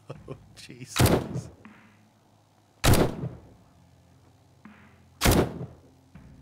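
A rifle fires single loud shots, a few seconds apart.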